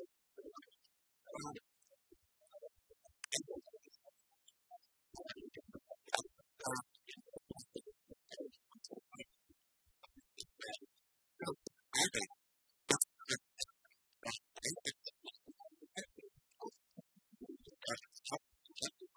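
Keys clatter on laptop keyboards.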